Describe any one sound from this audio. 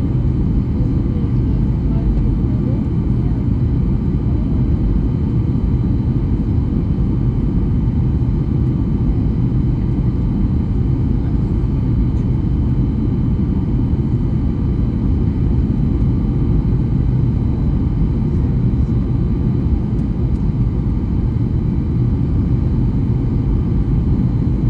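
Jet engines roar steadily from inside an airliner cabin.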